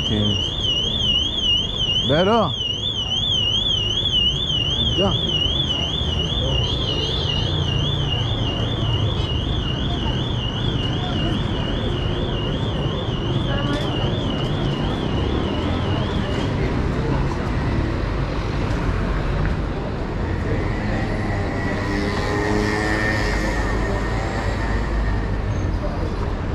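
City traffic hums steadily outdoors.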